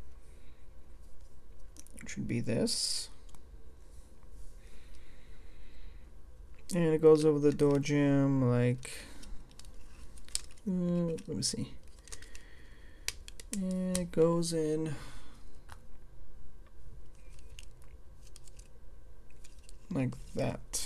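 Small plastic bricks click and rattle as they are handled and pressed together.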